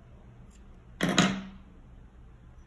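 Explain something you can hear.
Scissors snip once, close by.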